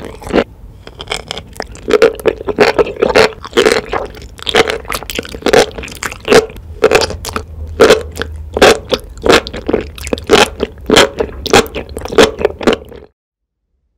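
A young woman slurps and chews soft, saucy food wetly close to a microphone.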